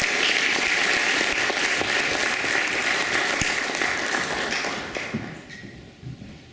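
People applaud in a large echoing hall.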